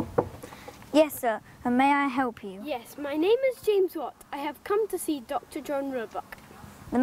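A young boy talks nearby.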